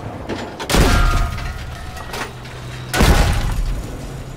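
Metal shrapnel rattles and pings.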